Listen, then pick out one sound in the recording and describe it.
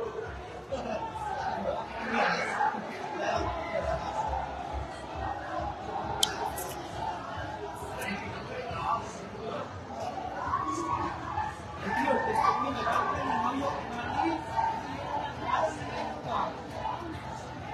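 Many diners chatter in the background.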